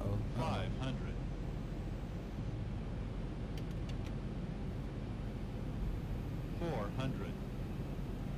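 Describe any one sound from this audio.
A young man speaks briefly into a headset microphone.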